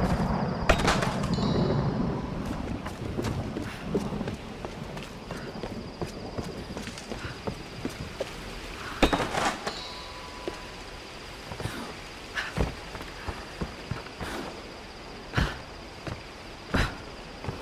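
Footsteps crunch over leaves and earth.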